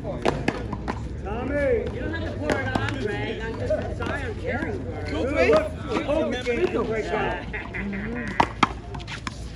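Adult men and women chat and call out nearby, outdoors.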